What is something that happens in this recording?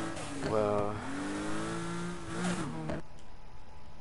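A sports car engine revs loudly and shifts gears.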